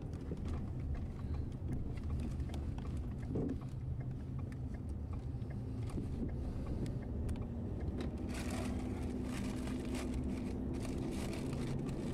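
A car engine rumbles steadily from inside the car.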